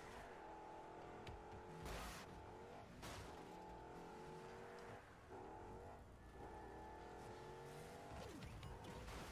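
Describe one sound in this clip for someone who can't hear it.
A video game car engine hums softly.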